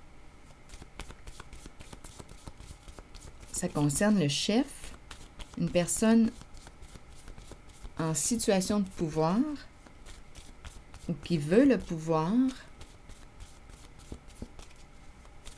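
Playing cards are shuffled with quick, soft flicking.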